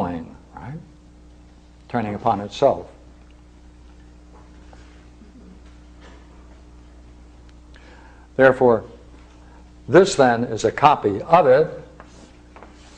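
An elderly man speaks calmly in short bursts with long pauses.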